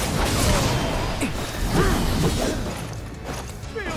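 A sword swings and strikes with sharp hits.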